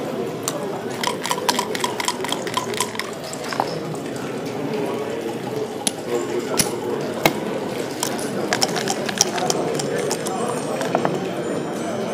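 Dice rattle and clack onto a wooden board.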